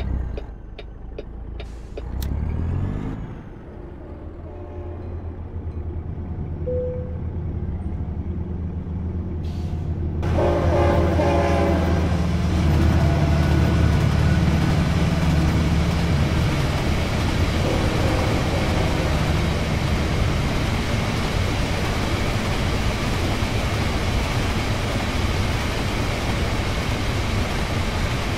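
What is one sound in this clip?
A truck's diesel engine rumbles and grows louder as the truck pulls away.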